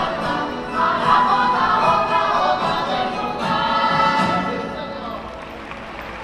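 A band plays lively folk music on stage.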